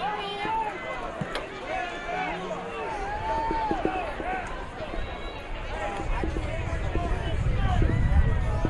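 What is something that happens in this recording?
Young men shout calls across an open outdoor field.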